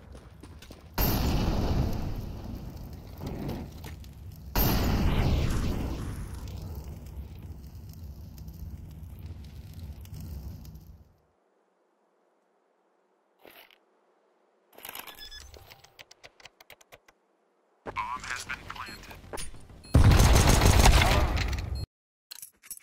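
Loud gunshots bang in bursts, echoing between walls.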